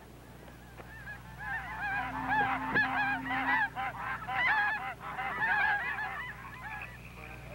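A flock of geese honks overhead.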